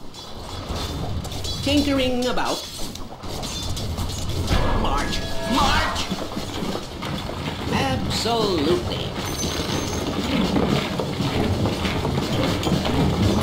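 Weapons clash and strike in a busy fight.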